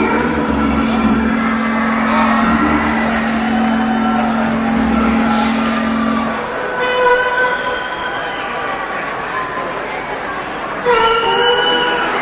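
An electric guitar plays a melody.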